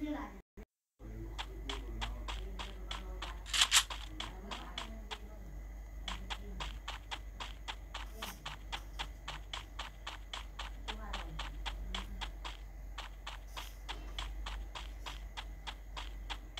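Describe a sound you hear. Footsteps run quickly over grass in a steady rhythm.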